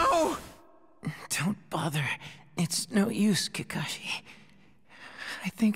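A boy speaks faintly in a strained, pained voice.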